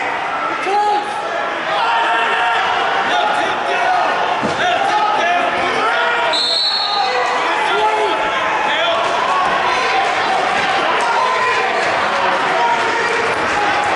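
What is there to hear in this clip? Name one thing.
Wrestlers scuffle and thud on a mat.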